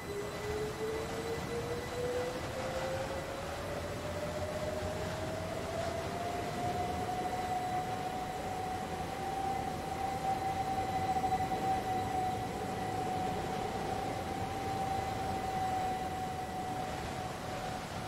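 Train wheels rumble and clatter over the rails.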